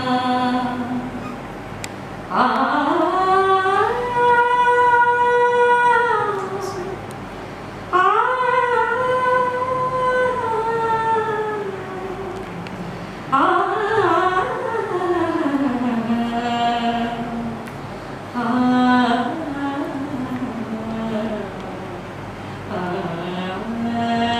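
A middle-aged woman sings a slow, drawn-out melody close by, holding long notes.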